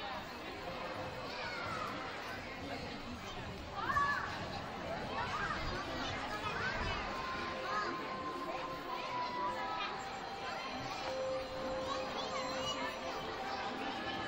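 Children shout and squeal with excitement.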